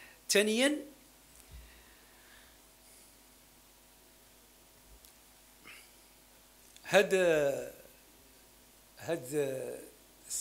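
A middle-aged man speaks forcefully into a microphone, with long pauses.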